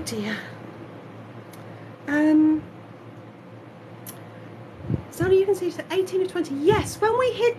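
A man speaks in a high, silly cartoon voice close to the microphone, with animation.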